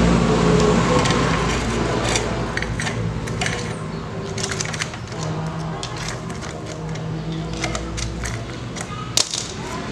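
A motorcycle chain rattles and clicks as hands move it.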